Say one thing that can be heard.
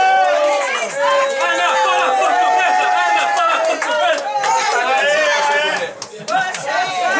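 A crowd of men and women sings together loudly and cheerfully nearby.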